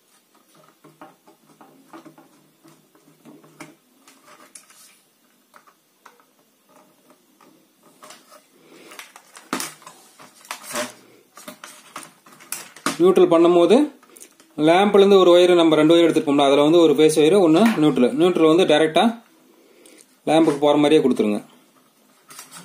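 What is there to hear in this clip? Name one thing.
Wires and plastic sockets click and rattle as they are handled.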